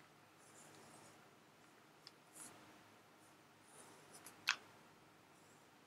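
A marker scratches across paper.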